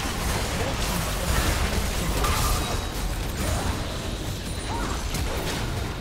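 Fantasy battle sound effects crackle and boom as magic spells hit.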